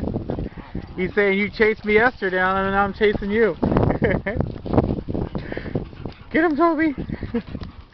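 A dog yelps and whines in a high voice.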